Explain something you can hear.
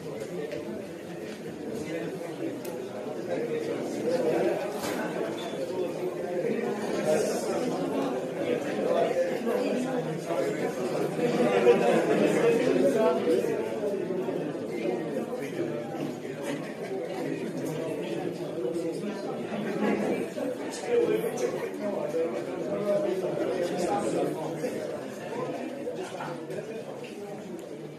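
A man speaks into a microphone over loudspeakers, announcing with animation in an echoing room.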